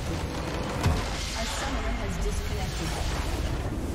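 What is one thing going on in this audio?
A structure shatters with a loud magical blast.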